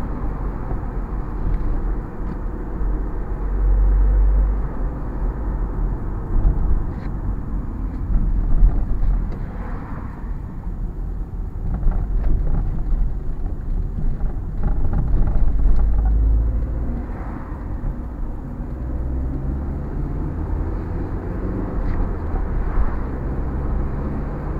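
Tyres rumble over a rough road surface.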